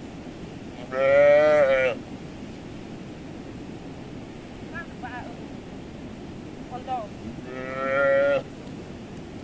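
A calf bleats loudly nearby.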